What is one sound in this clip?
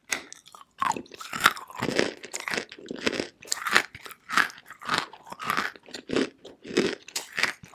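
A young woman crunches and chews something hard right up close to a microphone.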